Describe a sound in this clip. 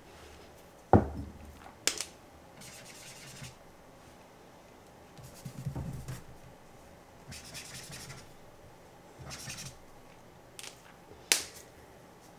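A plastic cap clicks on and off a pen.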